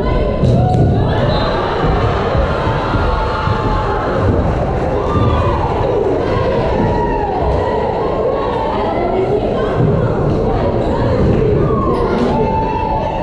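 Players' shoes squeak on the wooden court.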